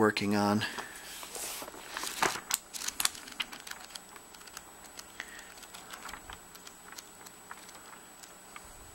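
Paper pages rustle and flap as a book is leafed through.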